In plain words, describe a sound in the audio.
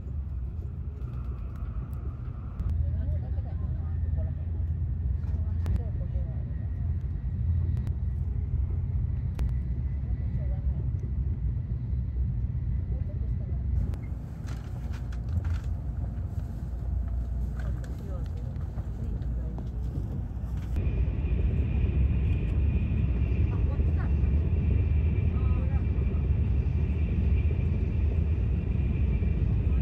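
A train rumbles steadily while travelling at speed.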